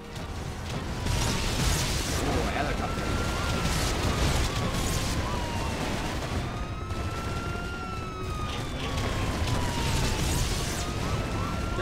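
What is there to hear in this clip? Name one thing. A helicopter whirs overhead with a whine that rises and falls.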